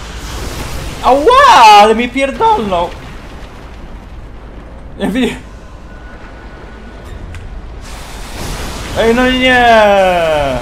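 A young man exclaims loudly into a nearby microphone.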